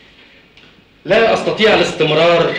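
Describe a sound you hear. A man speaks loudly and forcefully, close by.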